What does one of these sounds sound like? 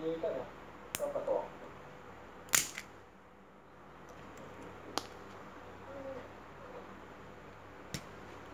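Pliers click against a small metal casing.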